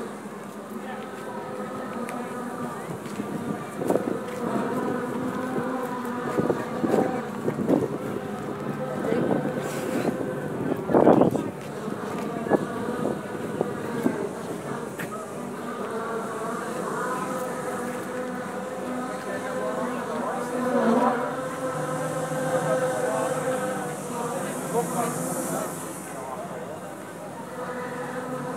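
An engine rumbles slowly as a large parade float rolls past.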